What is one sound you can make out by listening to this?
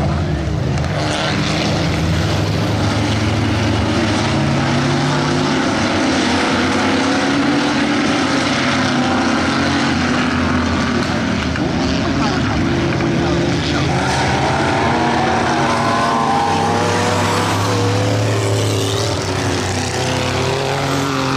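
Race car engines roar as the cars speed around a dirt track.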